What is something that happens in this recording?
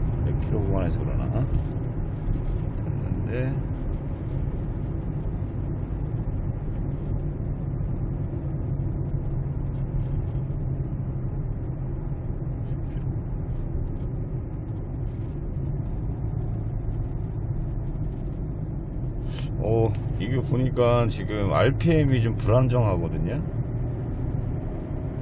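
Tyres rumble low and steady on the road.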